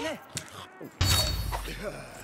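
A heavy blade strikes a monster with a sharp metallic clash.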